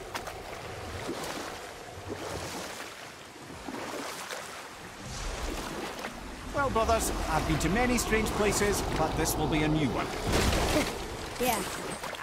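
Oars splash and dip rhythmically in water.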